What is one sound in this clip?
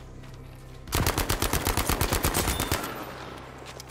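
A rifle fires in a rapid burst of loud shots.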